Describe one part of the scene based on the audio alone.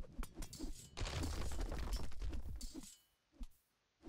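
A building collapses with a rumbling crash.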